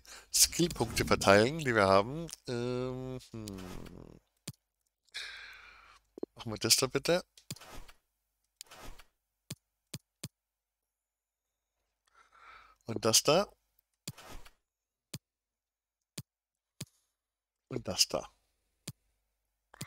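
Short menu clicks tick as options change.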